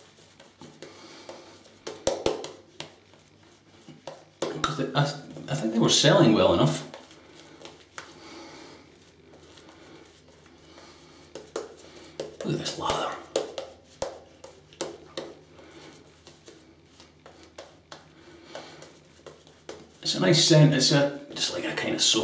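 A razor scrapes through shaving foam in short strokes close by.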